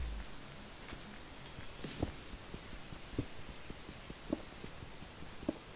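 Stone blocks crack repeatedly as a pickaxe digs into them.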